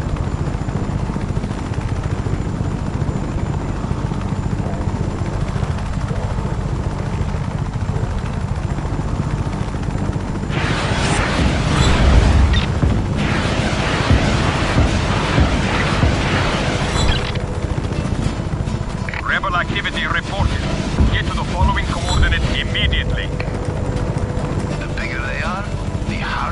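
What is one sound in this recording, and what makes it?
A helicopter's rotor thumps steadily and loudly overhead.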